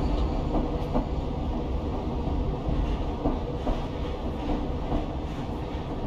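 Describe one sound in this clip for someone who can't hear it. A train carriage rumbles low and steady along the tracks.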